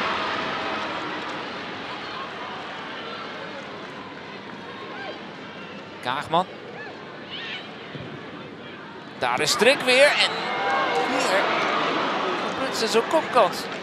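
A stadium crowd murmurs outdoors.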